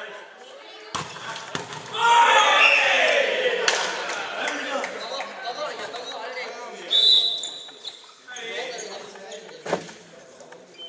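A volleyball is struck with sharp slaps that echo through a large hall.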